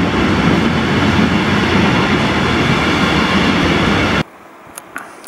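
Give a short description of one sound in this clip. A freight train rumbles past loudly, echoing under a station roof.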